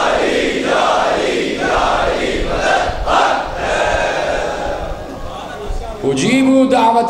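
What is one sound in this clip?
A large crowd chants loudly in rhythm.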